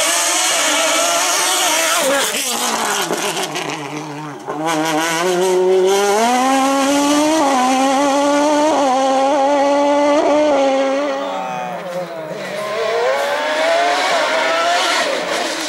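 A race car engine roars loudly, revving up and down through the gears.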